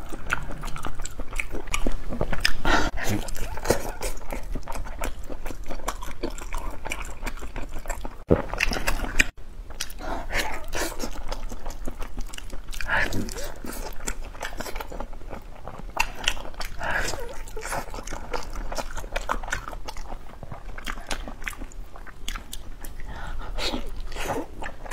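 A young woman chews and slurps sticky food close to a microphone.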